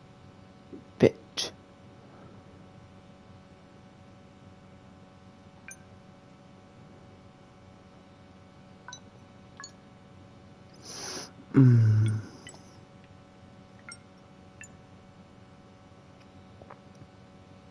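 Buttons on a keypad click softly, one at a time.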